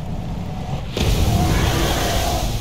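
A big splash bursts through water.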